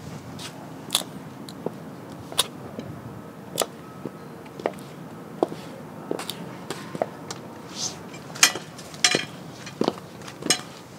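High heels click sharply on hard pavement.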